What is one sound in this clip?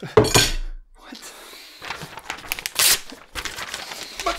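Paper tears.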